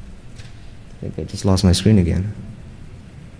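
A man speaks briefly into a microphone over loudspeakers in a large hall.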